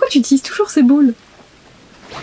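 A woman talks with animation into a close microphone.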